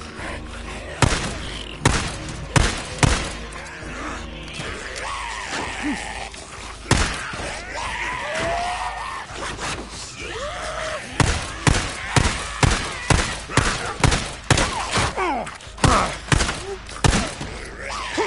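A pistol fires shot after shot in sharp, loud bangs.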